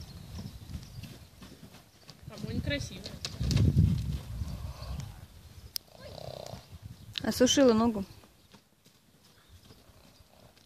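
Horse hooves thud on frozen ground as horses canter.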